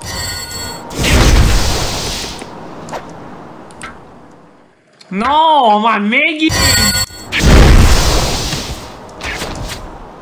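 Magic spells burst with loud whooshing blasts.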